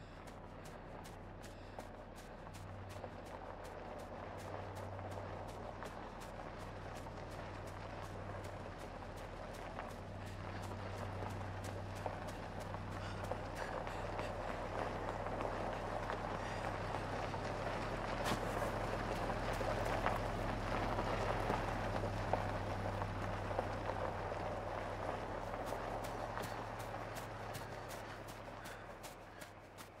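Quick footsteps run over soft ground.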